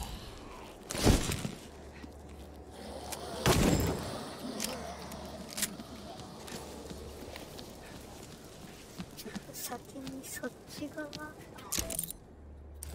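Blows and impacts thud sharply.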